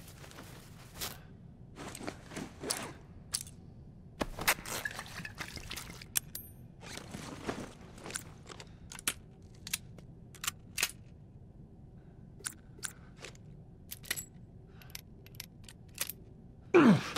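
Menu clicks tick sharply in quick succession.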